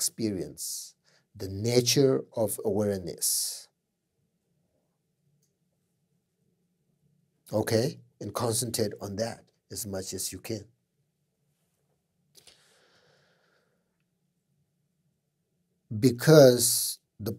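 A middle-aged man speaks calmly and slowly close to a microphone, with long pauses.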